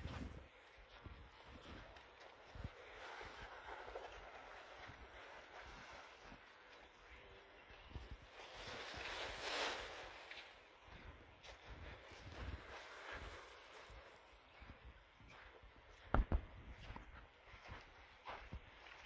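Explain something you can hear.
Footsteps crunch on dry ground and leaves.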